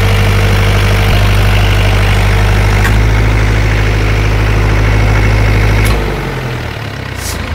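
A diesel engine runs with a loud, steady rumble, then shuts off and winds down.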